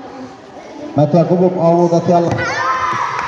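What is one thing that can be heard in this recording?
A boy shouts loudly in a large echoing hall.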